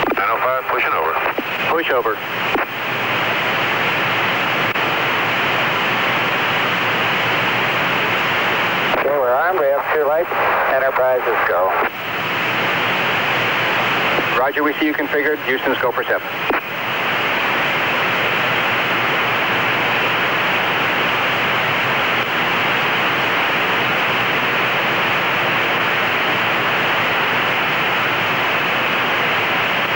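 Jet engines roar steadily.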